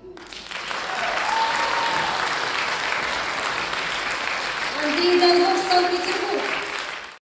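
A folk orchestra plays in a large echoing hall.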